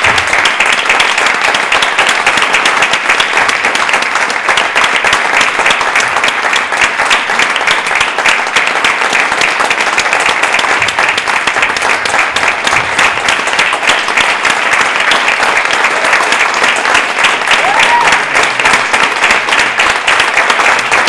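A theatre audience applauds in a hall.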